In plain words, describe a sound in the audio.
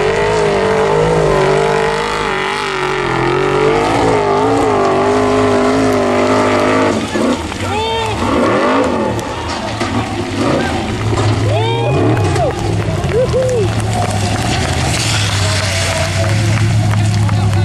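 An off-road engine roars and revs hard, rising and falling in pitch.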